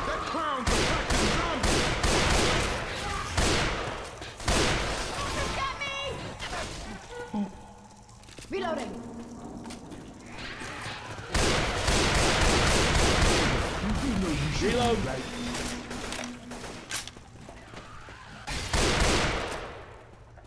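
Rifle shots fire in quick bursts, with heavy echoing blasts.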